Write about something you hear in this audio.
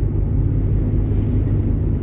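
A truck passes close by in the other direction.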